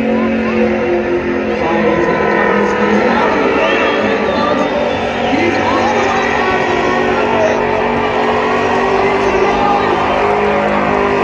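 Tyres screech as they spin on pavement.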